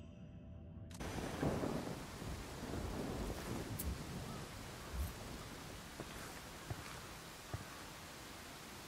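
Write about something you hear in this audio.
Footsteps crunch on dry ground outdoors.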